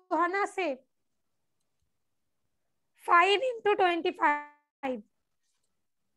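A young girl speaks in short phrases through an online call.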